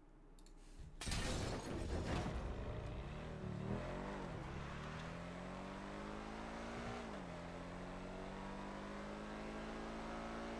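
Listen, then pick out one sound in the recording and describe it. A car engine revs and roars as the car speeds up.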